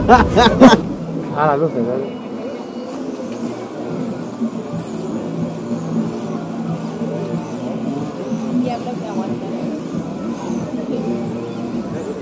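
A small electric motor whines as a toy truck crawls over logs.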